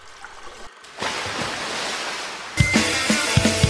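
Water splashes as a small creature leaps out of it.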